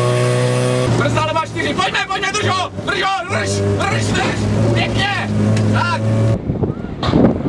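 A man reads out pace notes quickly over an in-car intercom.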